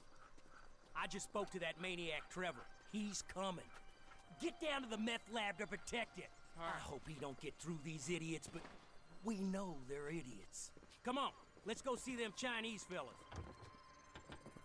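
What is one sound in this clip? Several men talk with animation, trading lines back and forth.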